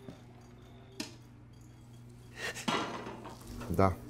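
A pot lid clatters open.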